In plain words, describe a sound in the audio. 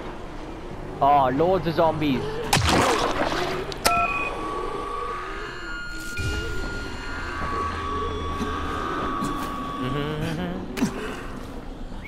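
Zombies groan and snarl nearby.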